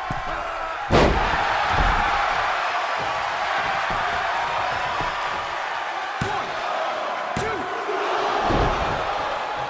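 Bodies slam heavily onto the ring mat.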